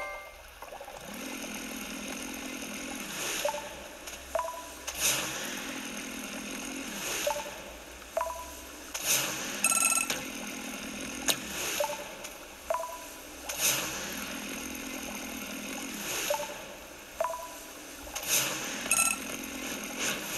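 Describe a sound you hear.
A game's motorboat engine hums steadily from a tablet speaker.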